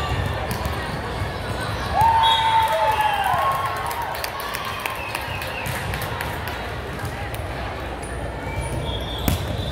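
Young women call out to each other at a distance.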